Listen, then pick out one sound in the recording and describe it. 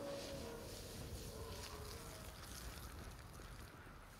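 Flames roar and hiss.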